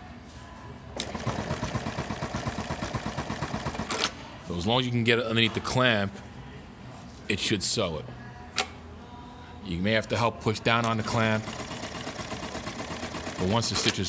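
A sewing machine stitches in a fast, even rhythm.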